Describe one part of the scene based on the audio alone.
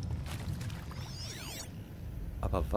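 A shimmering electronic sweep rings out briefly.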